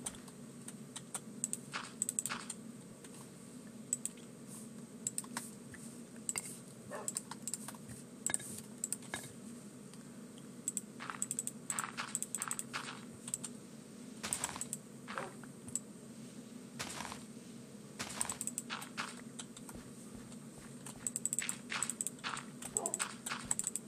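Blocks are placed one after another with short soft thuds.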